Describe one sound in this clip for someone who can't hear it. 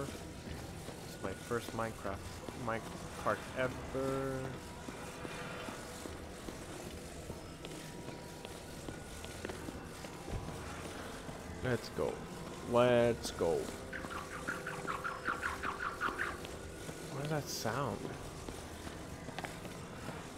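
A soft electronic hum drones steadily.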